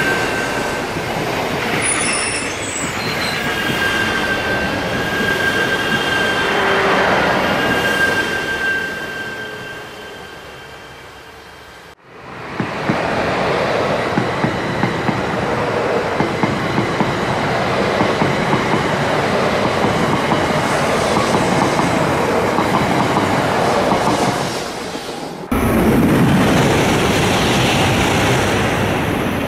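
Toy trains rattle and whir along plastic tracks close by.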